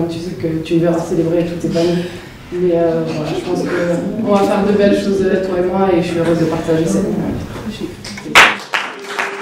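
A young woman speaks calmly and warmly, close by.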